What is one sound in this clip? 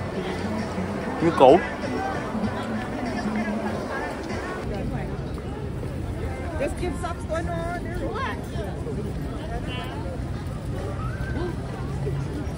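A crowd of people chatters close by outdoors.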